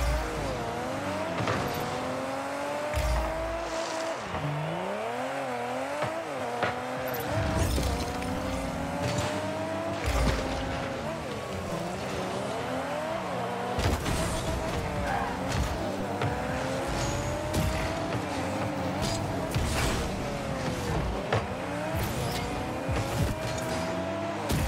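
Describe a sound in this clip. A car engine hums and revs up and down steadily.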